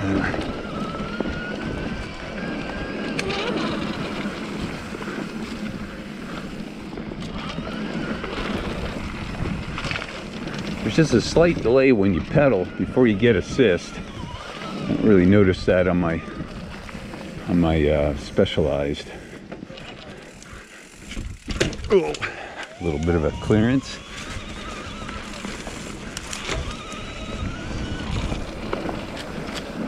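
Bicycle tyres roll and crunch over a dirt trail strewn with dry leaves.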